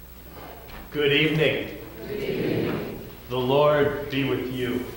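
A man speaks loudly and clearly through a microphone in a large echoing hall.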